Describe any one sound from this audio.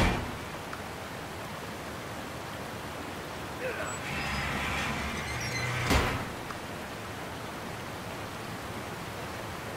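Water rushes steadily over a spillway.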